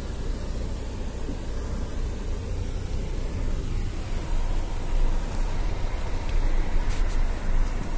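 A car drives on a dirt road, heard from inside the cabin.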